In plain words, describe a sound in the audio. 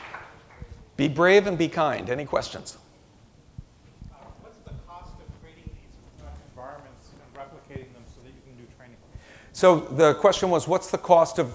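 A man speaks through a loudspeaker in a large hall.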